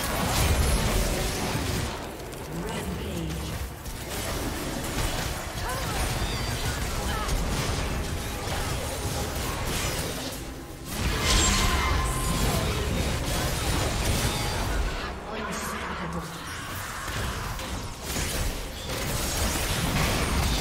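Magic blasts and hit sounds crackle in a fast video game battle.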